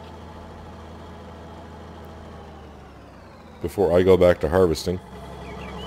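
A tractor engine idles with a low, steady hum.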